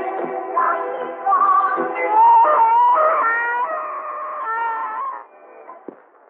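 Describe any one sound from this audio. Music plays.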